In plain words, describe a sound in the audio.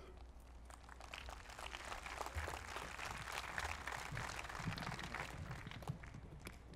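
A crowd applauds in the distance.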